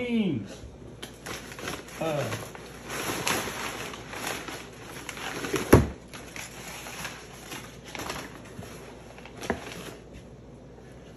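Paper packing rustles and crinkles as it is pulled from a cardboard box.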